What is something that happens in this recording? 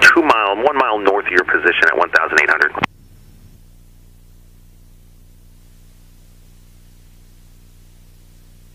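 A small plane's engine drones steadily.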